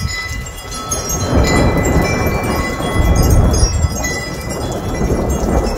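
Thunder rumbles in the distance.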